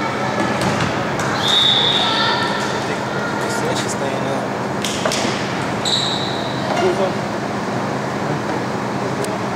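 A crowd murmurs and calls out in an echoing gym.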